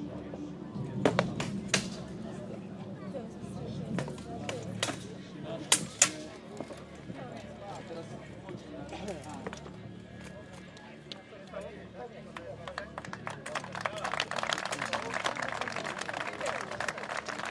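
Swords clang and knock against shields and armour.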